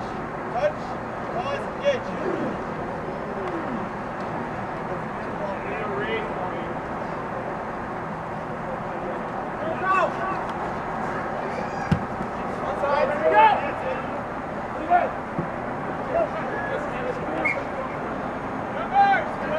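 Rugby players shout to each other outdoors, at a distance.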